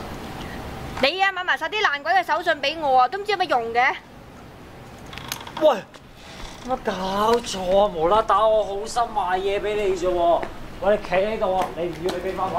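A young woman speaks in an upset, scolding voice, close by.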